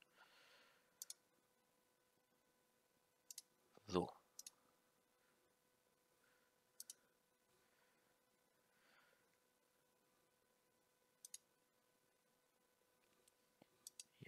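A mouse clicks several times.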